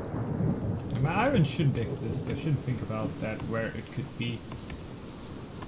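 A young man talks animatedly into a close microphone.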